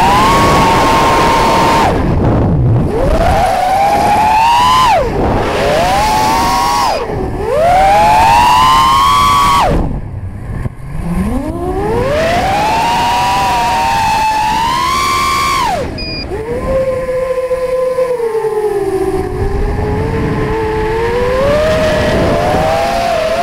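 Drone motors whine, rising and falling in pitch as the drone speeds up and slows down.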